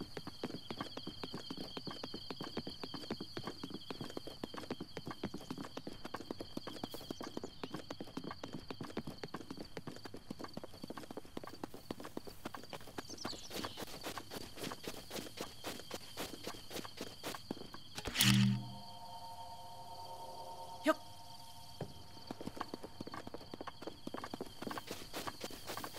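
Quick footsteps run over ground and grass.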